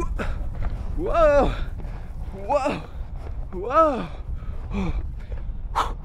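A man sings a playful, wavering tune.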